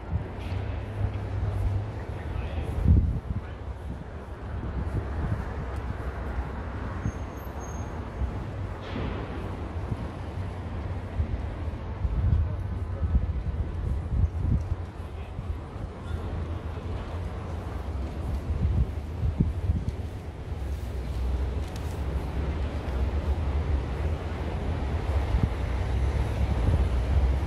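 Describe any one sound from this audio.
City traffic rumbles steadily along a nearby street.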